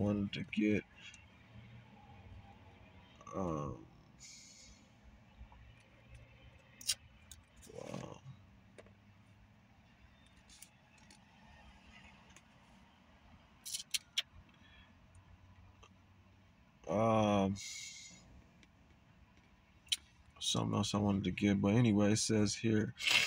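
A man speaks slowly and calmly, close by, with long pauses.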